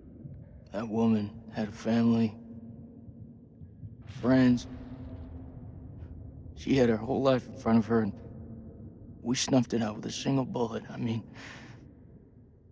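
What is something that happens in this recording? A young man speaks quietly and tensely, close by.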